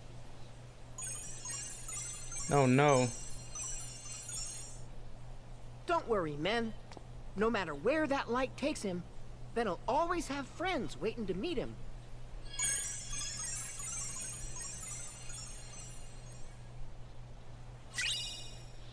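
Magical sparkles twinkle and chime as a glowing light flies off.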